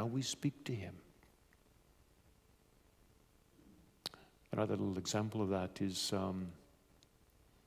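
A man speaks calmly into a microphone in a large, echoing room.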